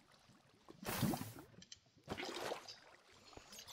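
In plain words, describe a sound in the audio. Water splashes as it pours from a bucket.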